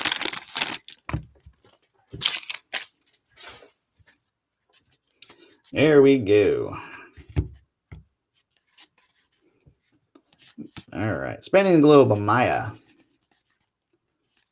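Trading cards rustle as they are shuffled by hand.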